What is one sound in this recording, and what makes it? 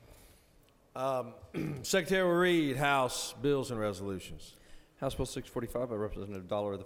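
A man speaks clearly into a microphone in a large echoing hall.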